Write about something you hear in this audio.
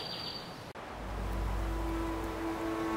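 Wind rumbles outdoors.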